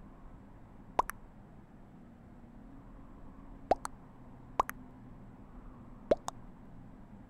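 Short game beeps sound a few times.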